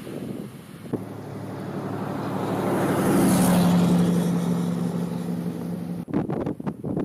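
A pickup truck drives past on the road.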